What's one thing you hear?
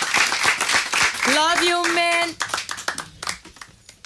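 An audience claps and applauds in a small room.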